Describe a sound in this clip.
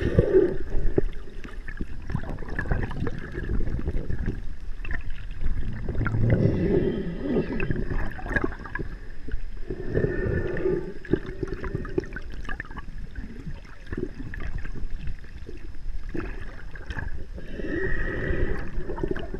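A whale moans and squeals in long calls underwater.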